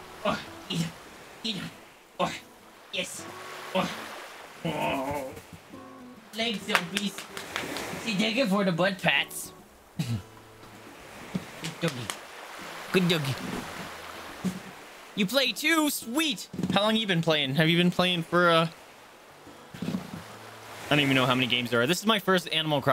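Gentle waves wash onto a shore.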